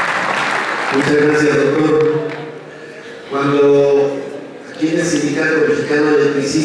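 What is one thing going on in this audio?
A man speaks loudly into a microphone through loudspeakers in a large hall.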